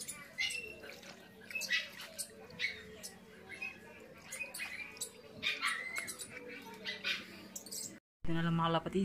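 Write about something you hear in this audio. Water sloshes and splashes in a bucket as hands knead inside it.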